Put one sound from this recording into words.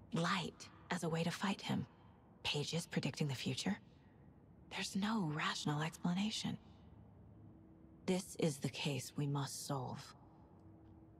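A woman speaks quietly and intently, close by.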